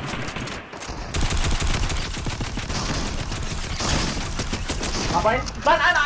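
A video game gun fires in rapid bursts.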